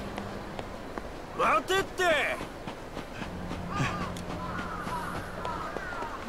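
Footsteps run quickly over hard pavement.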